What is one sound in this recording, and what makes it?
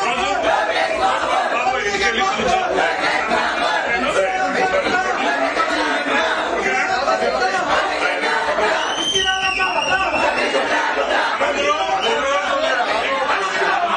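A crowd of men chatters loudly close by.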